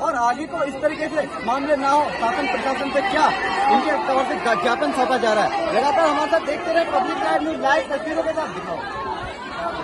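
A young man speaks quickly into a microphone close by.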